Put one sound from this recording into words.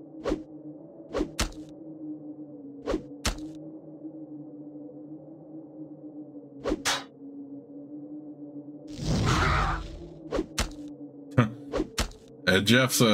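Weapons strike with short, sharp hits in a fight.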